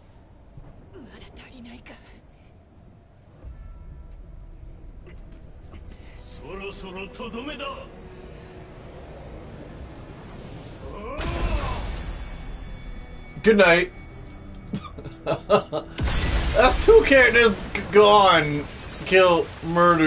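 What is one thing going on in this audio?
A young woman speaks tensely, then cries out in strain.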